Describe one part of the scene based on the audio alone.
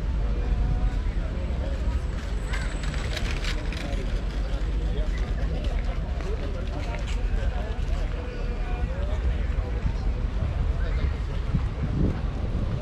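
A crowd of people chatters nearby and in the distance.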